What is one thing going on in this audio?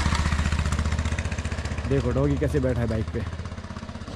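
A motorcycle engine hums as it rides by.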